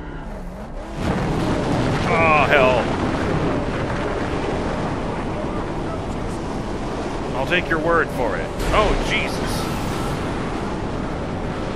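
Wind howls in a sandstorm.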